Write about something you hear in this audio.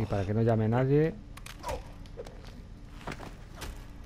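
Punches land with dull thuds during a scuffle.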